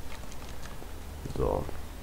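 Footsteps run across hard ground.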